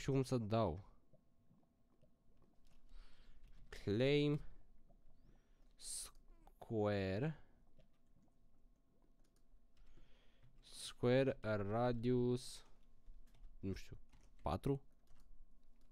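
A young man talks with animation close to a microphone, in short bursts.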